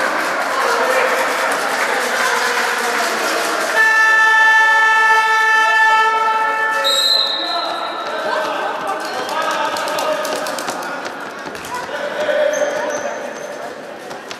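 Spectators and young players shout and call out in an echoing hall.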